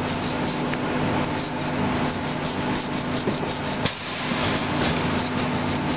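A wire brush scrubs against metal.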